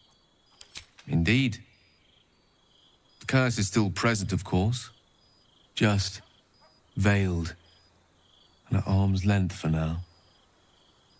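A man speaks calmly and warmly, close by.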